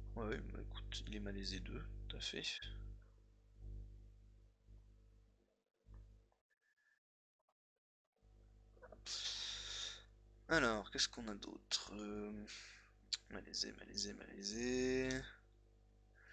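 A man speaks calmly and closely into a microphone, in short bursts with pauses.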